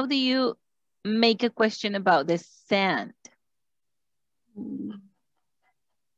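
A woman speaks clearly through an online call, then pauses.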